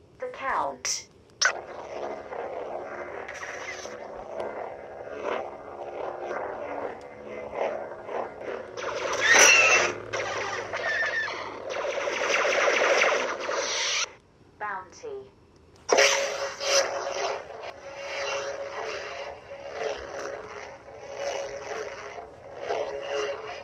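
A toy light sword hums steadily.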